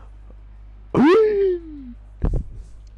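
A game menu plays a short whooshing sound effect.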